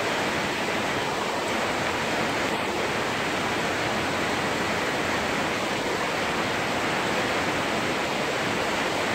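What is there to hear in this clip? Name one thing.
Heavy rain pours down onto metal roofs.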